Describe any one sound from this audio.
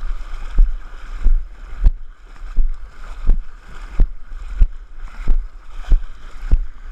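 Water splashes rhythmically as a person wades through a lake.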